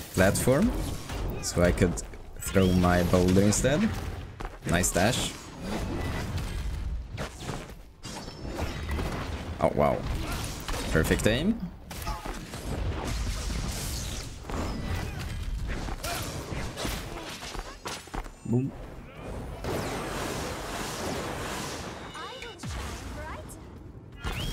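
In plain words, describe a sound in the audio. Game sound effects of punches, blasts and explosions come in bursts.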